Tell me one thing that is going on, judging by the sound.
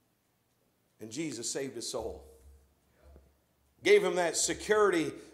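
A man speaks with emphasis through a microphone.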